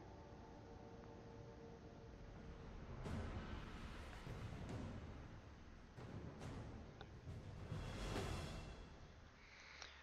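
Spaceship engines whoosh past in swelling rushes.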